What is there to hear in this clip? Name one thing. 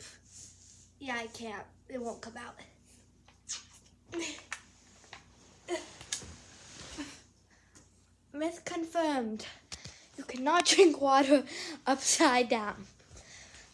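A young girl talks and sings animatedly close by.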